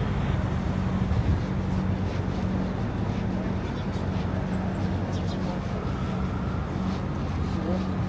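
Footsteps tap on the pavement.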